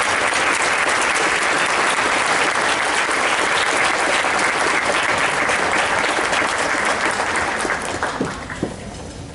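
An audience applauds loudly in a large echoing hall, then the clapping dies away.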